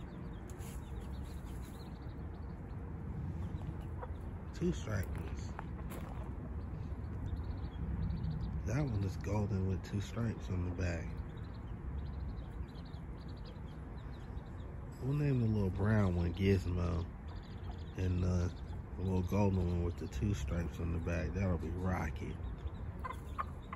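Small chicks peep softly and continuously.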